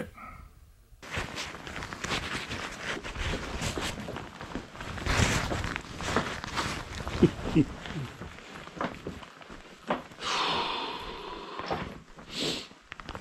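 Footsteps crunch and scrape on loose rock.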